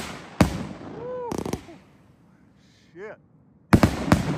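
Firework rockets whistle as they shoot upward.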